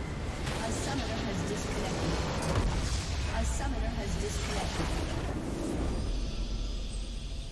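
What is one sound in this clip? A game building explodes with a deep rumbling blast.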